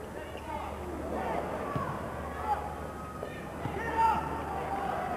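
A crowd cheers as a basket is scored.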